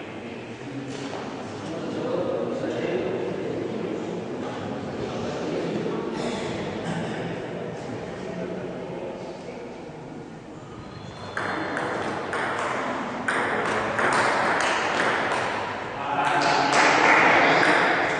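A table tennis ball clicks back and forth off paddles and a table in an echoing hall.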